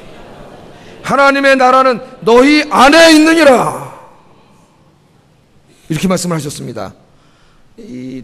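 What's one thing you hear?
A middle-aged man preaches loudly and with emphasis through a microphone, pausing between phrases.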